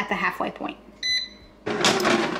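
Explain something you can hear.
An appliance beeps as a button is pressed.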